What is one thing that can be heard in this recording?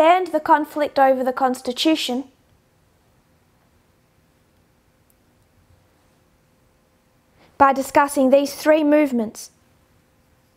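A woman speaks calmly and closely into a microphone, in short bursts with long pauses.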